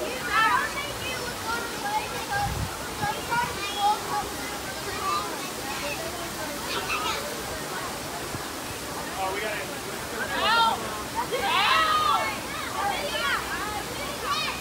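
Water splashes and sloshes as a girl wades through a pool.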